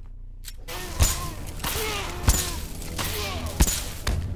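Heavy punches thud and crack in a fight.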